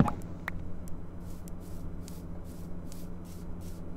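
Video game footsteps patter on grass.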